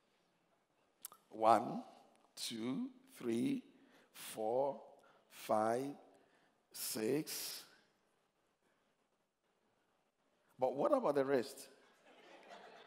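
An elderly man speaks with animation through a microphone, in short loud bursts with pauses.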